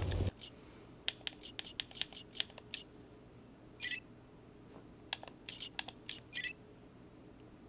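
Menu selections click and beep.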